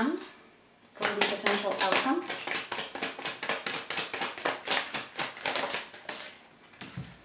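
Playing cards riffle and flutter as they are shuffled.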